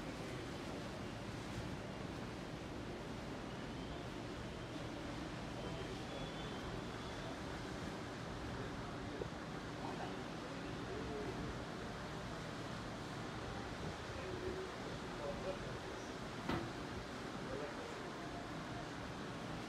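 Water churns and splashes against a large ship's hull.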